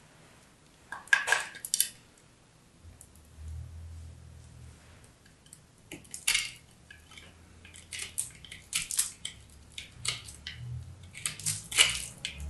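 A bar of soap scrapes against a metal grater.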